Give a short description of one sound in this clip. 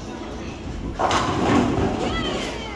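A bowling ball return machine rumbles.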